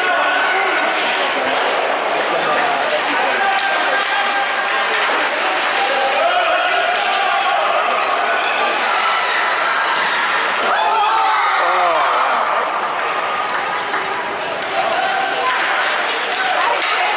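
Spectators chatter and shout in a large echoing rink.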